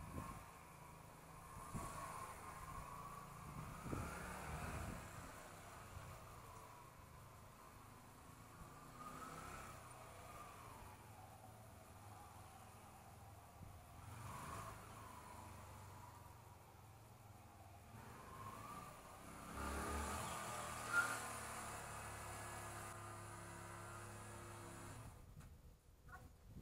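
A motorcycle engine revs up and down in the distance.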